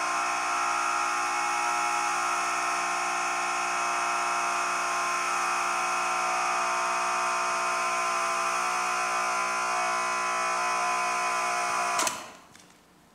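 A steady, many-toned electronic drone plays through loudspeakers and then cuts off abruptly.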